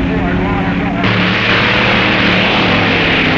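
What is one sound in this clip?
A drag racing car engine revs and roars as the car launches.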